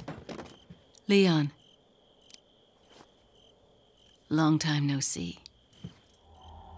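A young woman speaks softly and teasingly.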